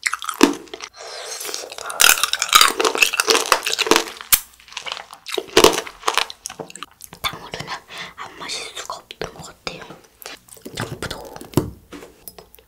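A young girl talks softly close to a microphone.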